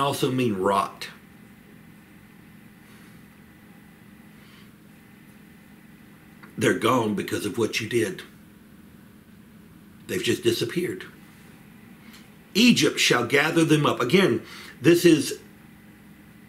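A middle-aged man speaks with animation close to a microphone, in bursts with pauses.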